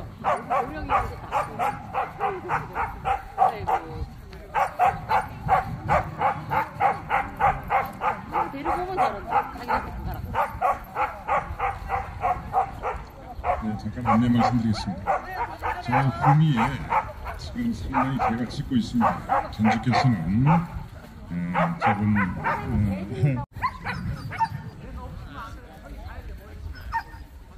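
People chatter in the distance outdoors.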